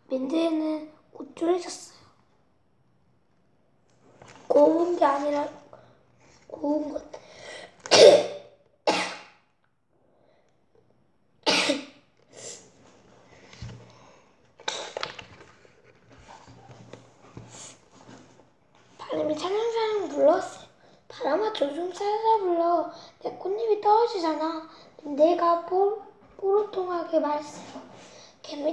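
A young boy reads aloud close by.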